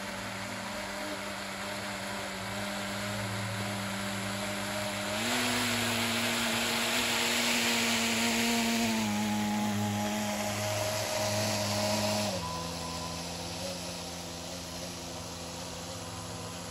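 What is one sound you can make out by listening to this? A small motor hums steadily, rising in pitch as it passes close and falling as it moves away.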